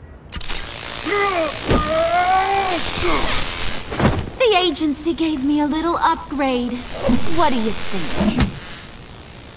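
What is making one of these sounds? A young woman speaks playfully, close by.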